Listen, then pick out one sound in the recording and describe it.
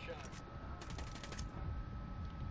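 Gunfire rattles in a short rapid burst.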